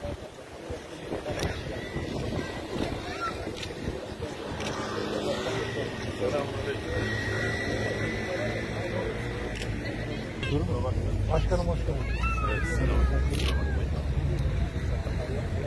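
A middle-aged man talks warmly with people around him.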